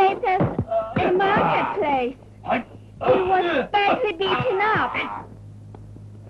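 A woman speaks loudly with animation, close by.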